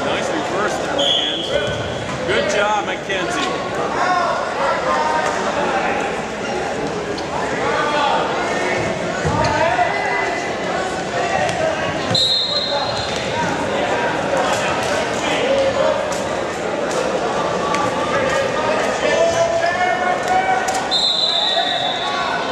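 A referee blows a short, sharp whistle several times.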